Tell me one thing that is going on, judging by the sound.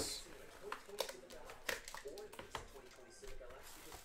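Cardboard scrapes as a box lid slides open.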